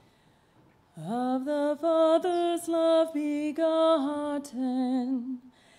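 A woman sings through a microphone in an echoing hall.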